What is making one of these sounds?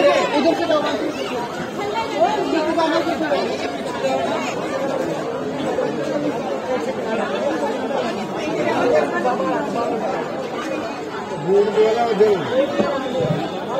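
A crowd of men and women chatter all around, close by.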